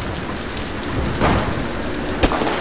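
Flames burst up with a loud whoosh.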